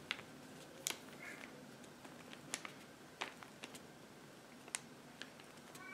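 A small brush dabs and rustles against thin paper.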